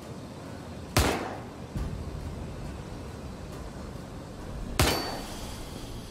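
A gunshot fires loudly and echoes.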